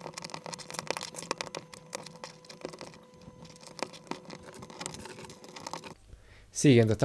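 Small plastic pieces click and rattle against each other.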